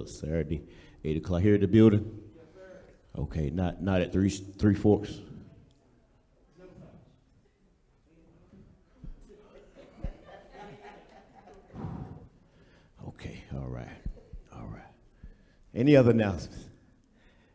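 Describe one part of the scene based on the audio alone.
A man preaches with emphasis through a microphone in a large echoing hall.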